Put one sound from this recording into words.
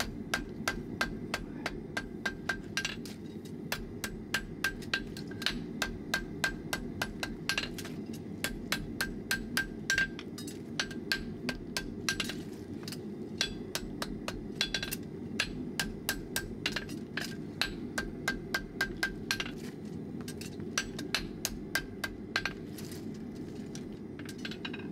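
A hammer strikes metal on an anvil in quick, ringing blows.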